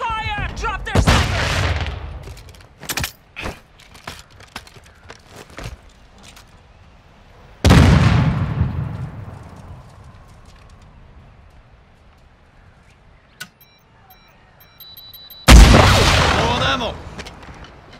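A rifle fires loud shots that echo and fade.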